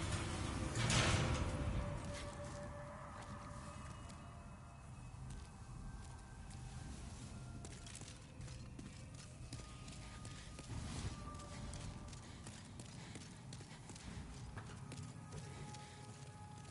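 Armoured footsteps clank and scrape on stone.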